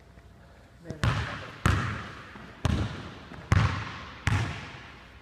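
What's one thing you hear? A basketball bounces on a hard floor, echoing through a large hall.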